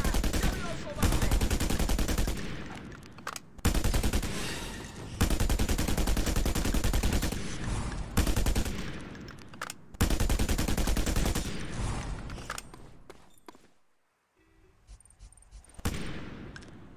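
Loud explosions boom one after another.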